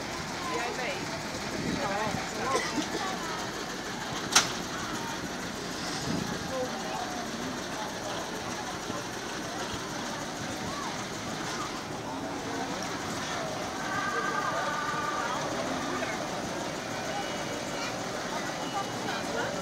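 A crowd of adults and children chatters outdoors nearby.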